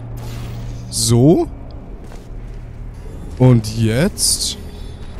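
A sci-fi gun fires with short, rising electronic zaps.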